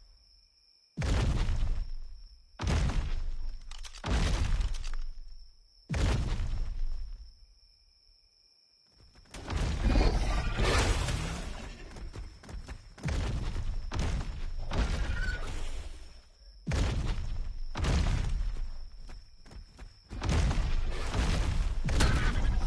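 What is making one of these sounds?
A large creature stomps with heavy, booming thuds.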